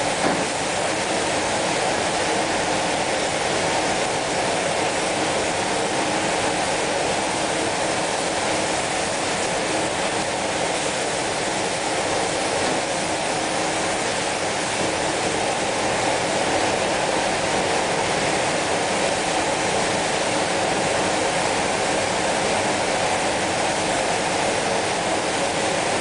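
A spray gun hisses steadily at close range.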